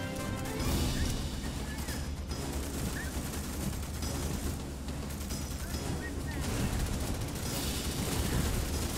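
A heavy engine rumbles deeply and steadily.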